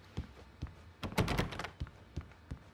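A wooden door swings open with a rattle.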